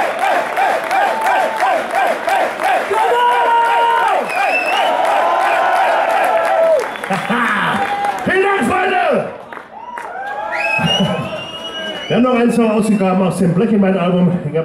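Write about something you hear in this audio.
A rock band plays loudly on a live stage.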